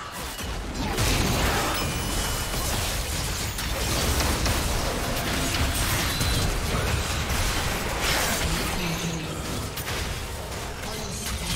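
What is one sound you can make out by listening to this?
Magic blasts and crackling hits burst during a game battle.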